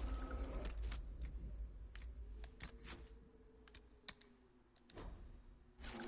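Soft menu clicks and beeps sound one after another.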